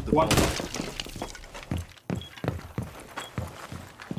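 Footsteps thud on a floor.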